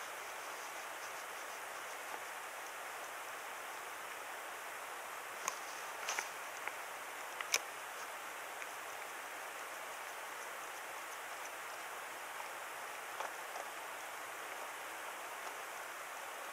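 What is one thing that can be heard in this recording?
Wind blows softly across open water.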